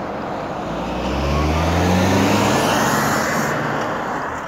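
A car engine revs up as the car pulls away.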